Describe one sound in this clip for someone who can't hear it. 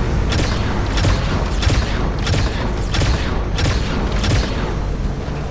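A mounted gun fires rapid bursts.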